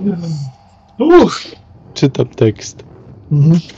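A man laughs loudly through a headset microphone.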